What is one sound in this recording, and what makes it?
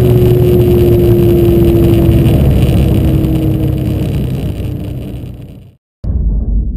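A car engine roars at high speed, then fades away.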